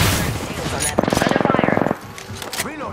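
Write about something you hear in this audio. An automatic gun fires a rapid burst.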